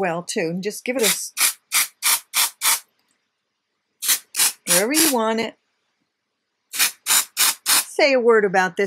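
An aerosol can sprays in short, quick bursts.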